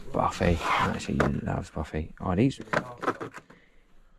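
Plastic toy packages clack and rustle as hands sort through them.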